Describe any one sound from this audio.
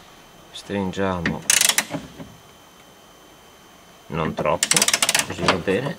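A ratchet clicks as it turns a bolt.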